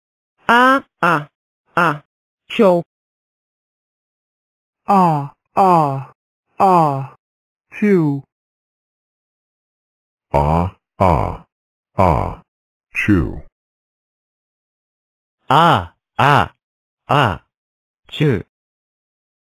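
A young man speaks in short, clipped words with long pauses, close to a microphone.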